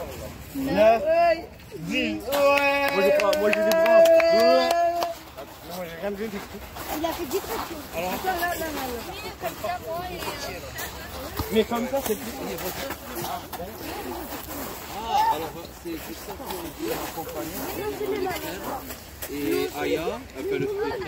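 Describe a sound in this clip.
Teenage boys talk and shout excitedly nearby, outdoors.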